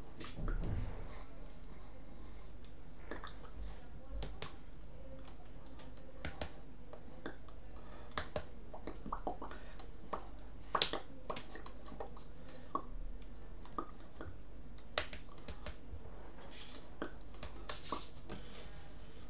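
Hands tap and brush together softly, now and then.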